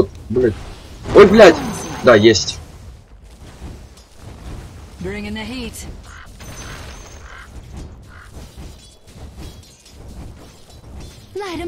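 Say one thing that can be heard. Fiery magic blasts whoosh and crackle.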